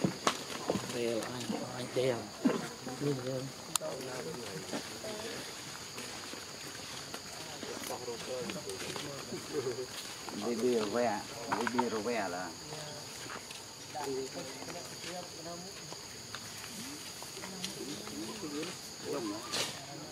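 A baby macaque whimpers and squeals.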